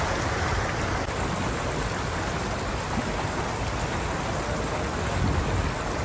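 Floodwater splashes and swishes under tyres.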